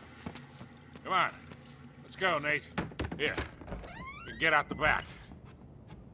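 An elderly man speaks urgently.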